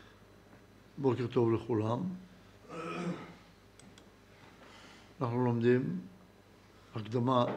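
An elderly man speaks calmly into a nearby microphone, in short phrases with pauses.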